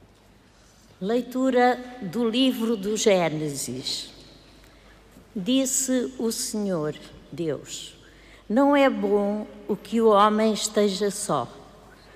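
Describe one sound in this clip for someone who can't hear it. A middle-aged woman reads aloud calmly into a microphone in a large echoing hall.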